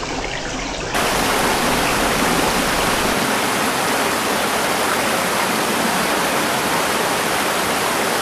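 Water churns loudly and roars in a close cascade.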